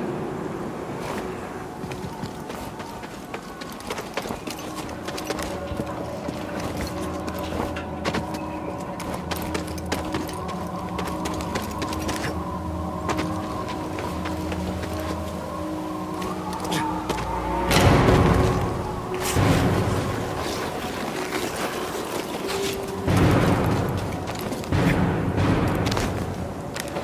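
Footsteps scuff quickly over rock.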